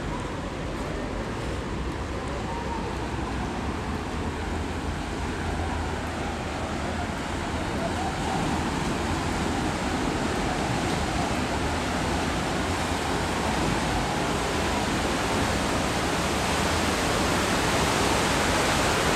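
A boat engine rumbles steadily and grows louder as it approaches.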